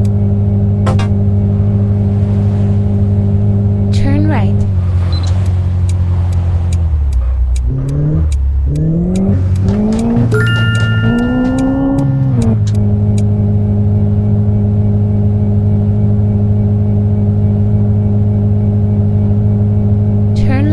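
A car engine hums steadily, dropping low as the car slows and then revving back up.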